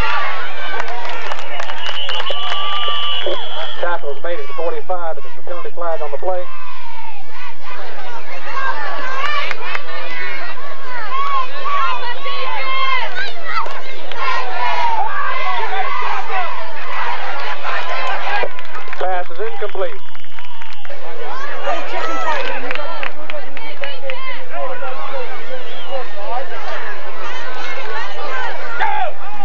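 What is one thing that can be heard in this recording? A crowd of spectators cheers and chatters outdoors.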